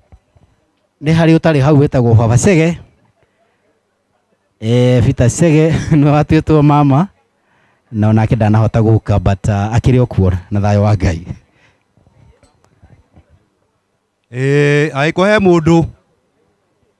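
An elderly man speaks loudly through a microphone, in bursts with pauses.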